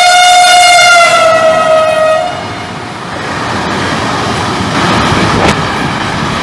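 A freight train rumbles and clatters past on the rails.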